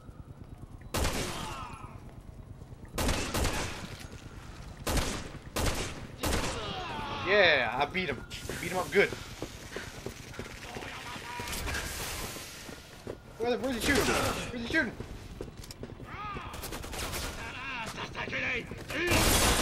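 Gunshots bang sharply, echoing in a large space.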